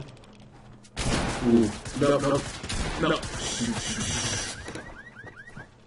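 Gunshots crack in a rapid burst.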